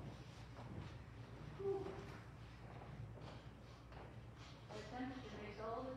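Footsteps cross a wooden floor in a large echoing hall.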